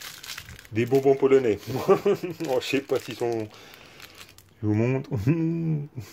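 Candy wrappers crinkle in a hand.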